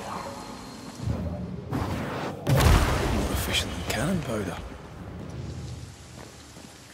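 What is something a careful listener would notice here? A magical energy surge whooshes and hums loudly.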